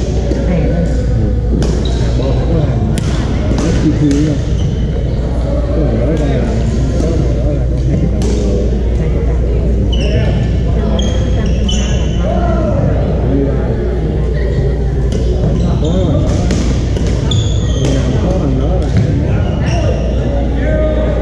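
Men and women chatter and call out across a large echoing hall.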